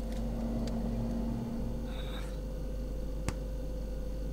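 A refrigerator door swings shut with a soft thump.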